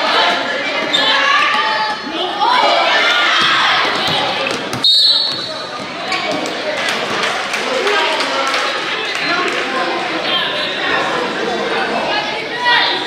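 A crowd cheers and calls out in a large echoing gym.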